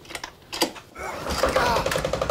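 A recoil pull-start cord is yanked on a small diesel engine.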